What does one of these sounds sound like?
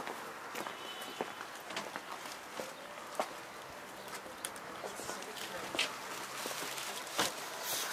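Paper bags rustle and crinkle as they are handled.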